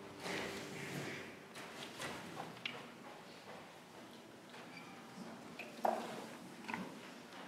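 A young woman sings into a microphone in a large echoing room.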